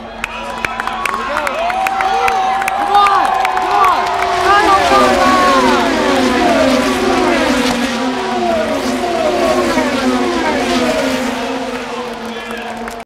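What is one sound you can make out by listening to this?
Race cars roar past on a track, their engine pitch dropping as each one passes.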